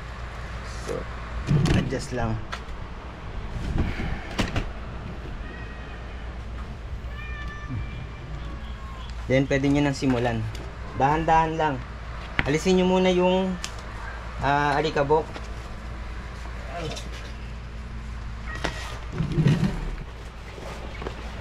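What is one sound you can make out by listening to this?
Plastic sheeting rustles and crinkles close by.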